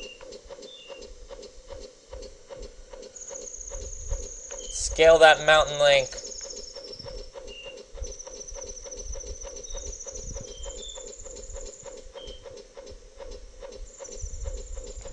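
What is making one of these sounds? Footsteps tap quickly and steadily on metal rungs.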